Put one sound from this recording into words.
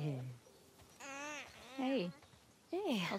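A goat bleats with a wavering cry.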